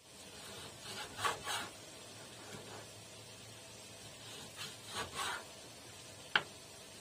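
A large knife chops through meat and bone with sharp knocks.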